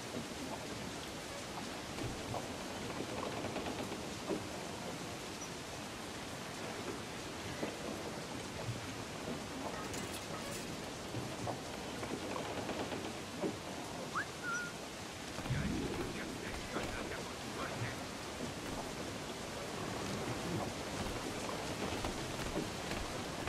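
Sea waves wash steadily against a wooden ship.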